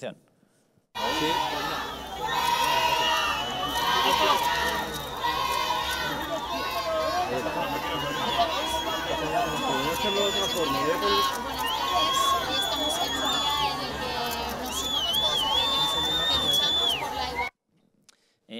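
A young woman speaks with animation outdoors.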